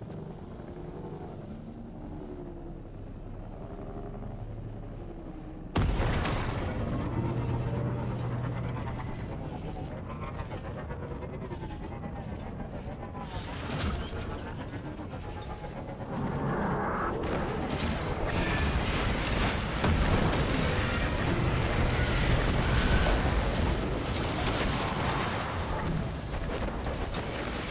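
A hover bike engine whooshes and hums as it speeds along.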